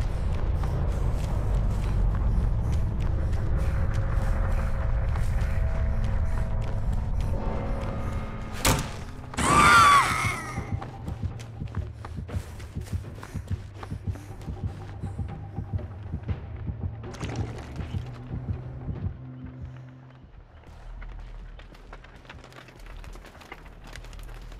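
Footsteps crunch quickly over grass and gravel.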